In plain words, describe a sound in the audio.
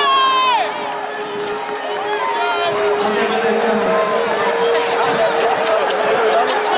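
A large crowd cheers and shouts in an open stadium.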